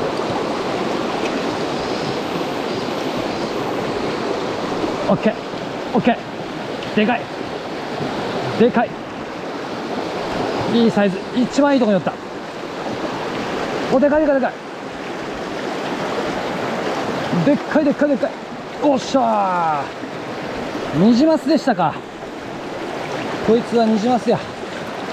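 A fast stream rushes and splashes over rocks.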